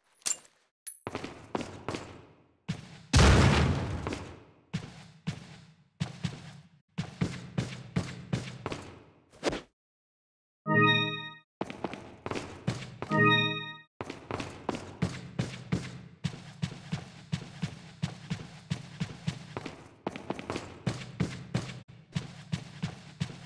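Footsteps thud steadily on a stone floor in an echoing hall.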